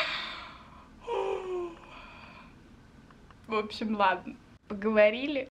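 A young woman talks cheerfully close to the microphone.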